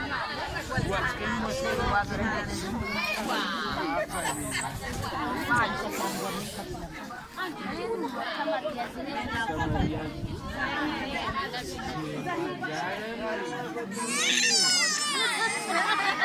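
A crowd of children and adults chatter and call out outdoors.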